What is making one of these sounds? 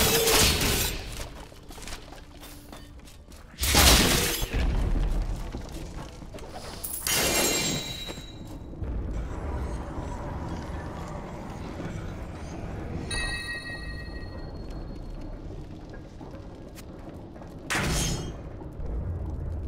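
Loud whooshing bursts of fighting sounds ring out.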